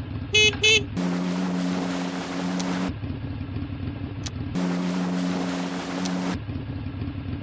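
A jet ski whirs and splashes through water.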